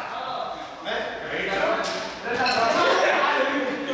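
Sneakers squeak and patter on a hard floor as young people run.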